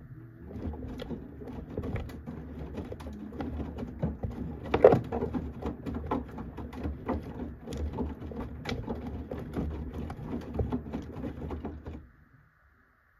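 Laundry tumbles and sloshes in water inside a washing machine drum.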